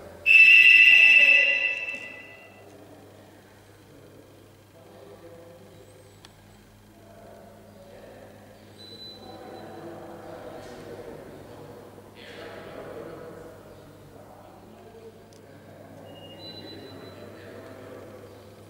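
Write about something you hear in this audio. Machinery hums steadily.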